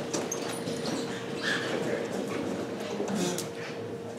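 Chairs creak and shuffle as people stand up.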